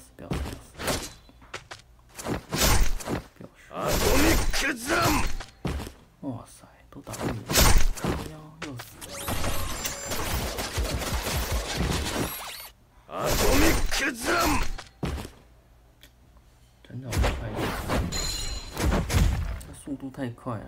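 Game blasts and hits crash and boom in quick bursts.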